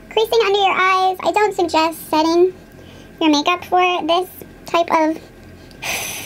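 A young woman talks closely into a microphone in a lively way.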